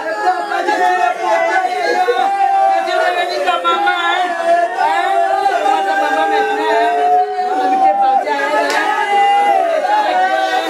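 A woman cries and wails loudly nearby.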